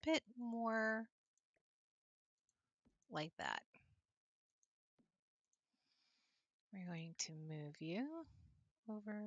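A young woman talks with animation into a close microphone, in short bursts with pauses.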